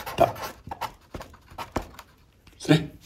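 A pen scratches and taps on paper.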